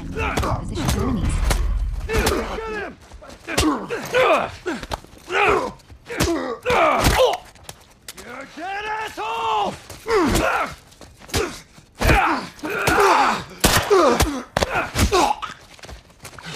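Fists thud heavily against bodies in a brawl.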